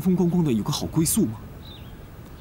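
A young man speaks close by, asking with concern.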